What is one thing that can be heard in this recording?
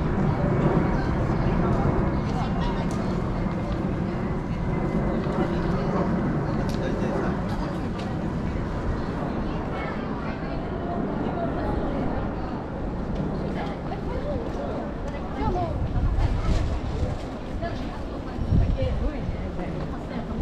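Wind rumbles steadily outdoors on a street.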